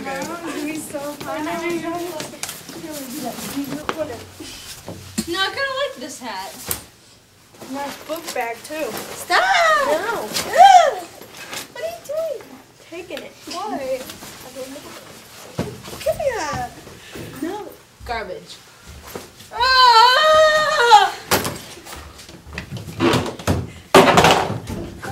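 Teenage girls talk with animation in an echoing hallway.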